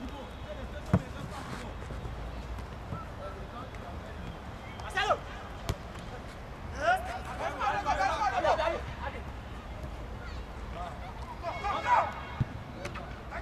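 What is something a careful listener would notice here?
A football thumps as players kick it.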